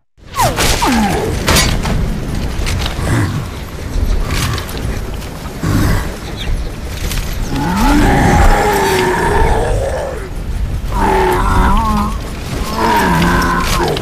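A monster roars with a deep, growling voice.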